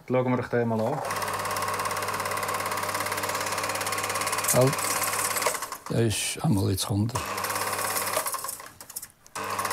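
A film projector whirs and rattles steadily.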